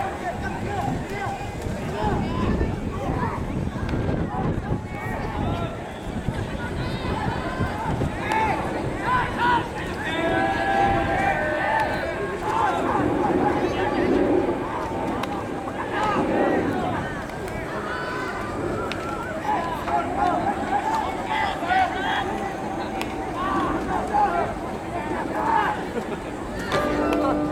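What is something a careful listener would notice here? Young men shout calls to each other outdoors at a distance.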